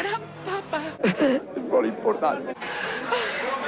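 An elderly man speaks with emotion into a microphone.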